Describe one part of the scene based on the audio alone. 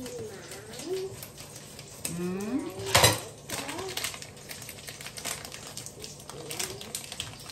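A woman speaks briefly and casually, close by.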